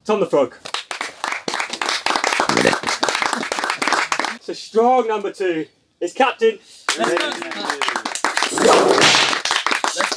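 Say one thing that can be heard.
A group of men clap their hands.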